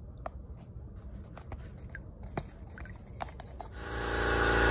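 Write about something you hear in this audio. A stick knocks and scrapes against a plastic cup while stirring paint.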